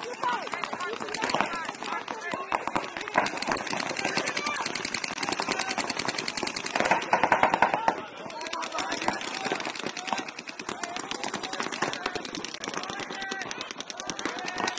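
Paintball guns fire in rapid bursts of sharp pops.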